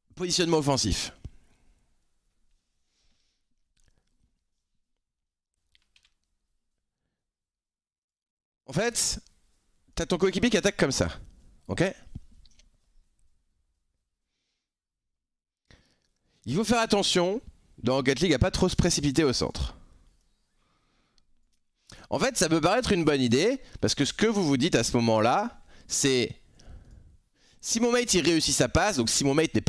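A man talks with animation into a close microphone, in bursts with pauses.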